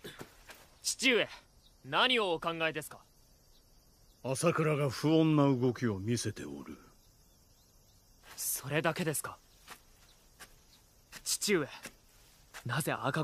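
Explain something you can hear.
A young man speaks calmly, asking questions.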